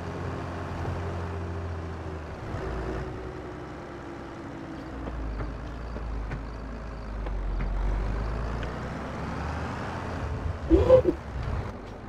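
A tractor engine rumbles steadily while driving.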